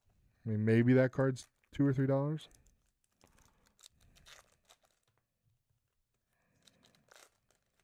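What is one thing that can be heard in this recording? A foil card wrapper crinkles as it is torn open.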